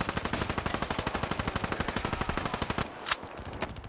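A gun fires in rapid, steady bursts.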